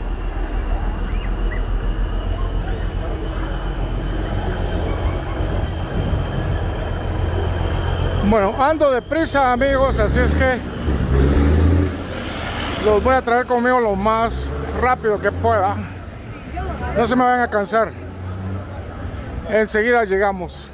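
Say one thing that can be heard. A busy crowd of pedestrians chatters and walks outdoors.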